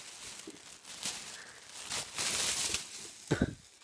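A plastic bag crinkles and rustles close up.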